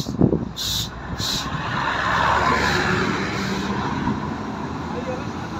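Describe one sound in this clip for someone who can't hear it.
A bus drives past close by on a road.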